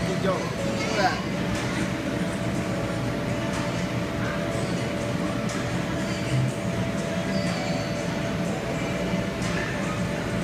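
An air blower hums steadily throughout.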